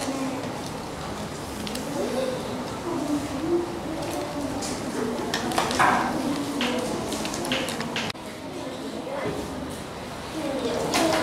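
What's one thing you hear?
Paper rustles and crinkles in small hands.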